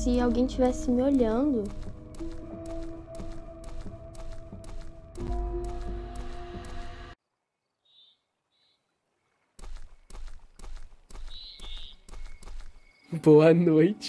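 Footsteps tread steadily on soft ground.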